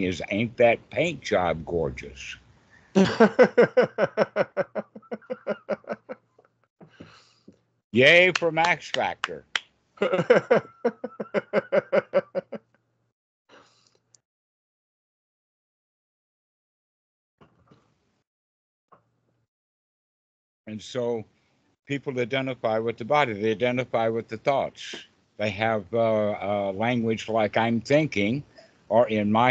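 An elderly man talks over an online call.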